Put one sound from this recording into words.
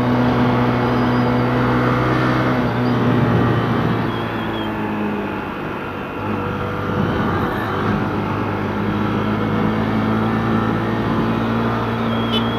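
A motorcycle engine hums steadily, its pitch dipping and rising as it slows and speeds up.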